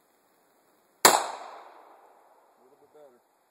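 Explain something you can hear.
A pistol fires a single loud shot that echoes and fades outdoors.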